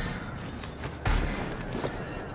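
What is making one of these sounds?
Feet land on concrete with a heavy thud.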